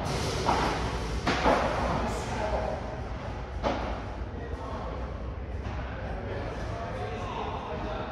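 The sound echoes in a large hall.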